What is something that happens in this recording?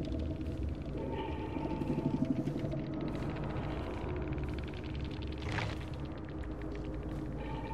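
A game's score counter ticks up with rapid clicks.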